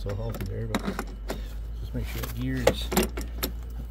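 A plastic wheel clicks as it is pushed back onto a metal axle.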